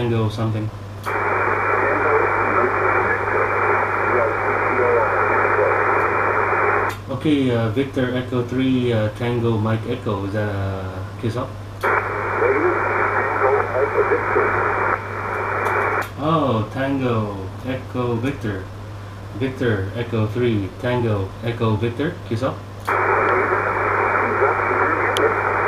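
Static hisses loudly from a radio receiver in bursts.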